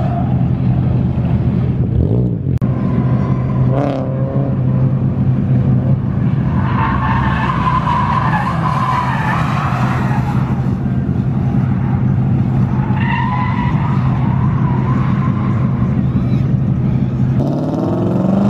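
A car engine roars loudly at high revs while drifting.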